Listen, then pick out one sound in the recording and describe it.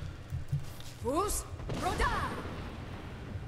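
A giant spider screeches shrilly.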